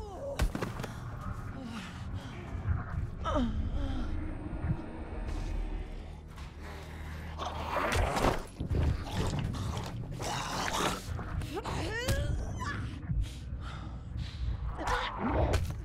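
A zombie groans and snarls close by.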